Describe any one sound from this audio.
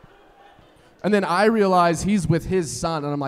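A man speaks with animation into a microphone in a large hall.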